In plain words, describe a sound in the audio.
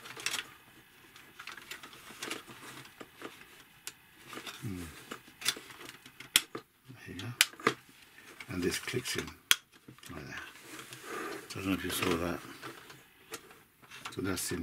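Plastic parts click and knock as hands fit them together.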